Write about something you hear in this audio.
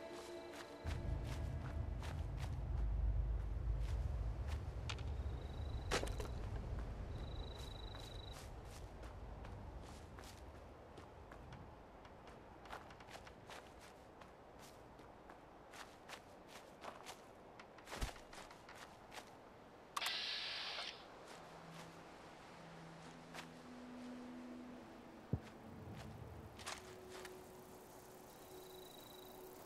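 Footsteps crunch through dry leaves and undergrowth.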